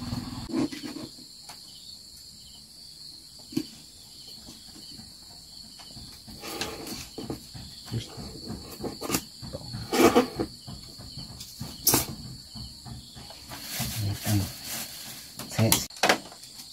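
Small things knock and scrape now and then close by.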